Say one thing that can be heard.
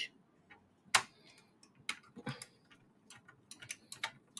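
A screwdriver clicks and taps against plastic parts.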